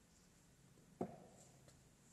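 A board knocks against a table.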